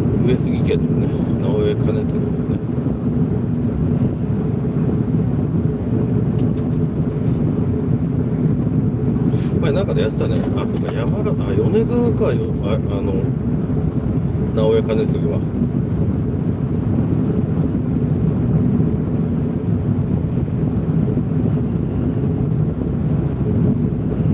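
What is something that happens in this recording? A car engine hums steadily from inside while driving along a road.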